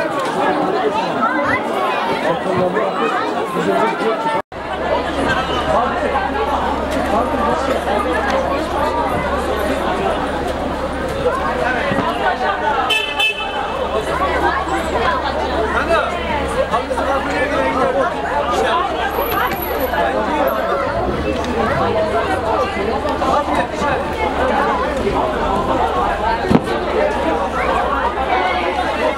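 A crowd of men and women talk and call out over each other outdoors, close by.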